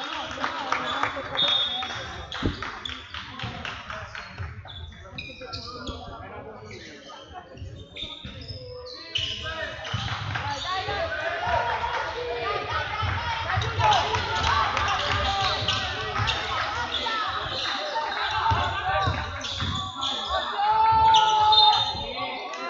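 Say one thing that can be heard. A crowd of spectators murmurs and calls out in an echoing hall.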